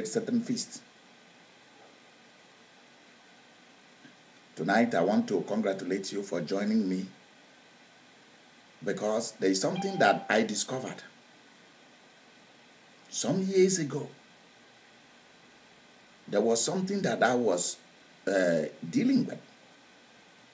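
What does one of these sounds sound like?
A middle-aged man speaks with animation close by, in bursts with pauses.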